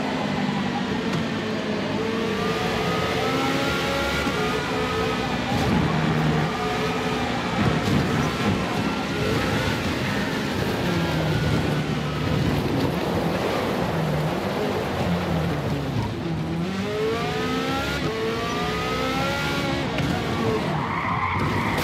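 A racing car engine roars and whines, rising and falling as it shifts gears.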